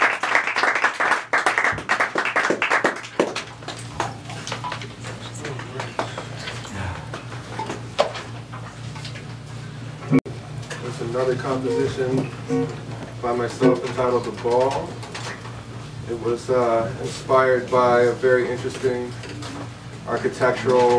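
An electric guitar is strummed softly.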